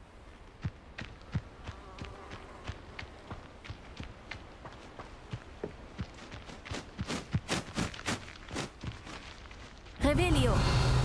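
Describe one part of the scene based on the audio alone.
Quick footsteps patter over soft ground.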